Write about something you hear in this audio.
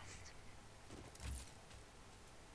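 A heavy thud sounds as a figure lands on the ground.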